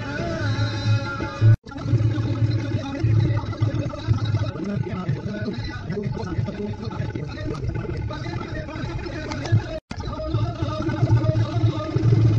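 Car engines idle nearby in slow traffic.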